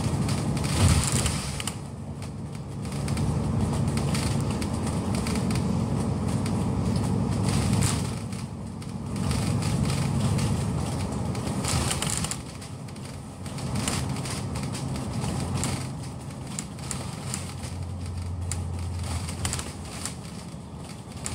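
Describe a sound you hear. A vehicle rumbles steadily as it drives along a road.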